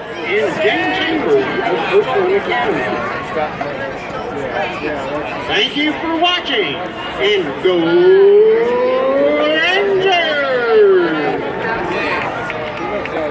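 A crowd chatters and calls out nearby.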